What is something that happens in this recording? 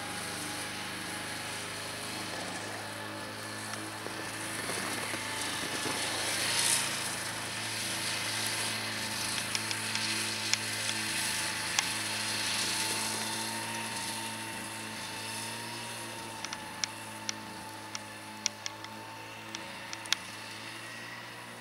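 A snowmobile engine drones steadily as it drives across the snow.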